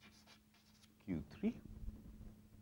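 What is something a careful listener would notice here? A man speaks briefly and calmly.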